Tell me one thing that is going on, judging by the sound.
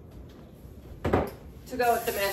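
A thud sounds as an object is set down.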